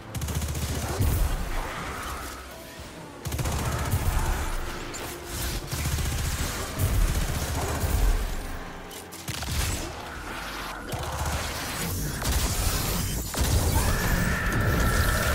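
Energy blasts explode with deep booms.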